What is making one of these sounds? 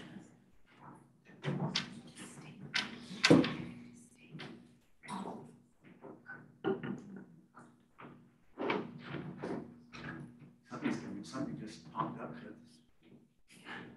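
Knocks and rustles come from a person working beneath a lectern.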